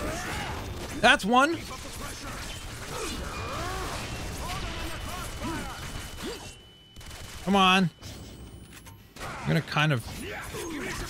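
Creatures shriek and snarl.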